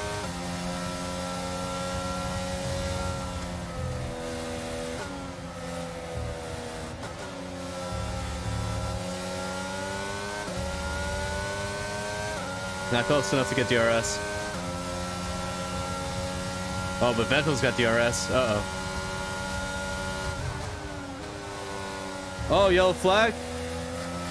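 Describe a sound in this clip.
A racing car engine roars steadily, shifting pitch as it speeds up and slows down.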